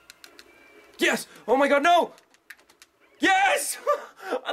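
A young man shouts excitedly close to a microphone.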